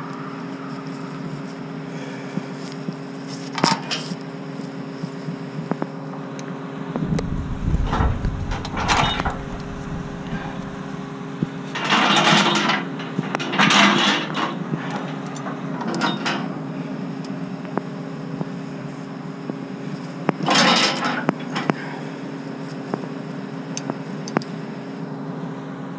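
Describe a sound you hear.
A heavy machine's engine idles with a steady low hum.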